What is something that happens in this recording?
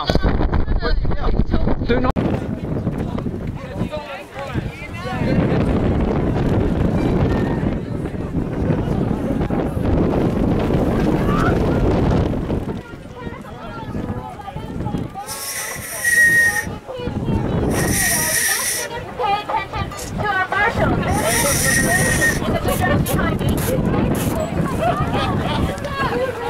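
A crowd chatters outdoors in light wind.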